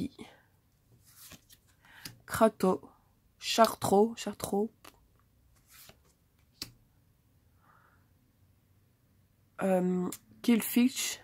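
Playing cards rustle and slide against each other as they are handled.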